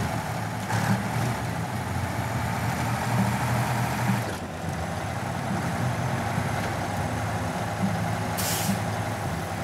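Truck tyres churn through mud and snow.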